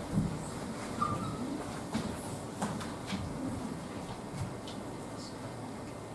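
Children and adults murmur and chatter quietly in a large room.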